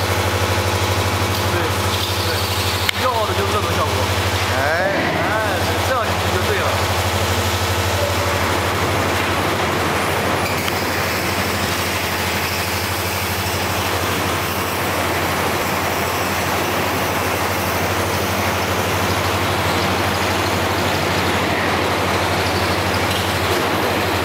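A machine drones with a low, steady hum.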